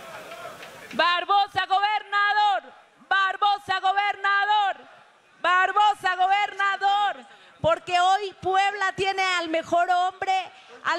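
A woman sings loudly through a microphone and loudspeakers.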